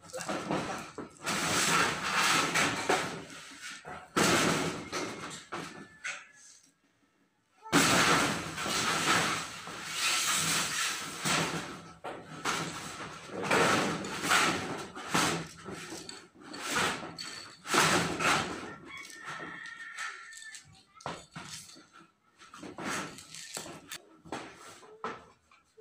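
Corrugated metal roof sheets rattle and scrape as they are shifted by hand.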